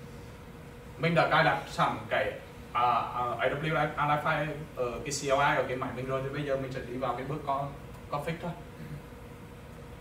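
A man speaks calmly through a microphone and loudspeakers.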